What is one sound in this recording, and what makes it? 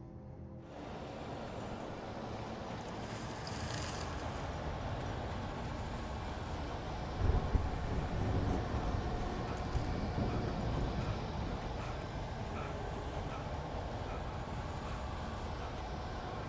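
Leaves and branches rustle as someone pushes through.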